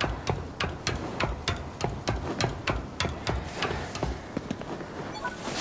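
Hands and feet clang steadily on metal ladder rungs during a climb.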